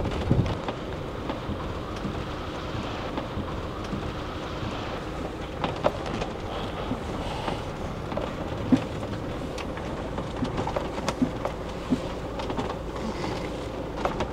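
A van engine hums as the van drives slowly.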